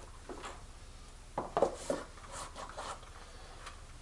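A cardboard box rustles and thumps as it is handled.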